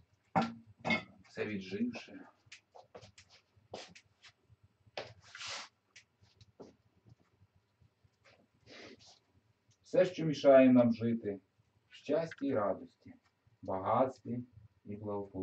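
A man speaks nearby in short phrases.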